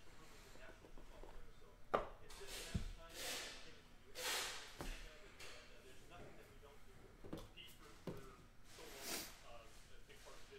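Cards and packaging rustle and slide in hands close by.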